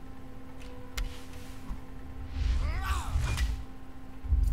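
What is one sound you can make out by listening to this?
A short digital whoosh and chime play as a card is played in a game.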